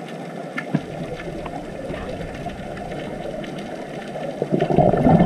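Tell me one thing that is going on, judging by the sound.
Air bubbles from a diver's breathing gear gurgle and rumble underwater, growing louder toward the end.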